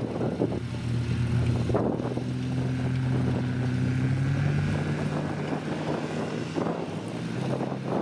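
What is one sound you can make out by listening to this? A small car engine drones steadily, close by.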